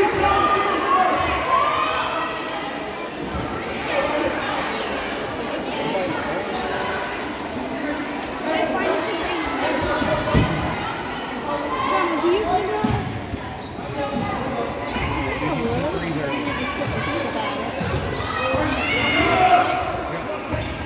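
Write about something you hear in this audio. Spectators shout and call out in an echoing gym.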